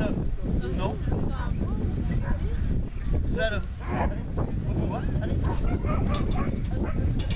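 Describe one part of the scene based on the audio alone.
A man calls out commands to a dog outdoors.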